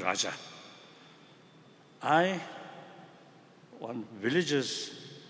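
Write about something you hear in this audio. An elderly man speaks slowly in short phrases through a microphone, in a reverberant hall.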